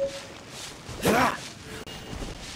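A blade slashes at wood with quick hits.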